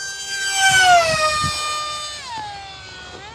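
A small model plane engine whines overhead, dropping in pitch as it passes.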